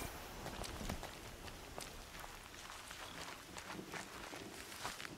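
Footsteps crunch through dry brush and snow.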